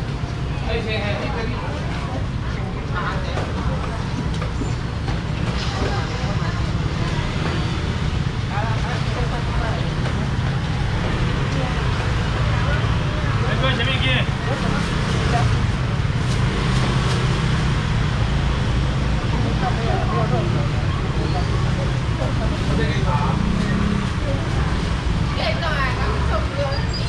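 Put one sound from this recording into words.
A busy market crowd murmurs and chatters all around.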